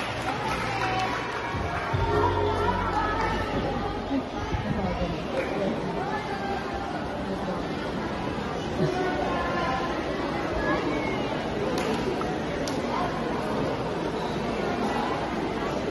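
A crowd of children chatters and calls out in a large echoing hall.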